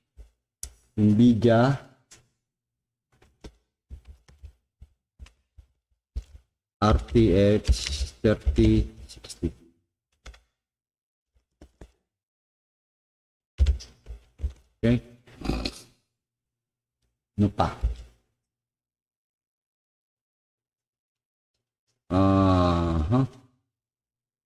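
A man speaks in short bursts close by.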